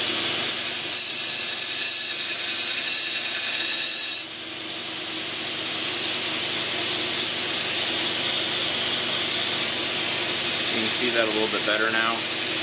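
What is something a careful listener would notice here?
A belt sander motor hums steadily.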